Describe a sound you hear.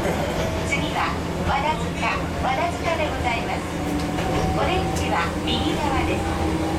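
A level crossing bell rings nearby as the train passes.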